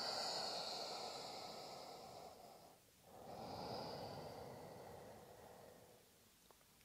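A woman breathes out slowly and deeply.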